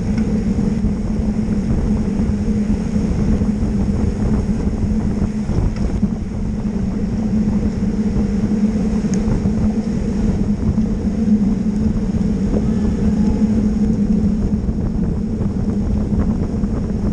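Wind rushes loudly past, as if outdoors while riding.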